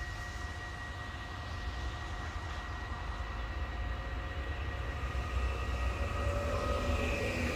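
A train approaches, growing steadily louder.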